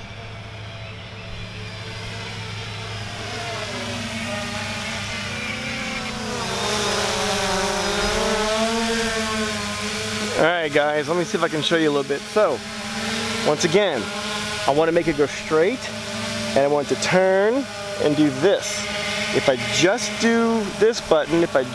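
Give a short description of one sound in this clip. A drone buzzes in the air, growing louder as it approaches.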